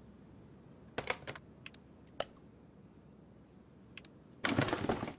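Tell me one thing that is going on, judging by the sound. Short electronic clicks and chimes sound as a menu opens and closes.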